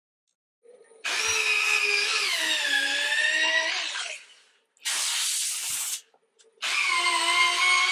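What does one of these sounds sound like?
A handheld power sander whines loudly in bursts, its pitch dipping and rising.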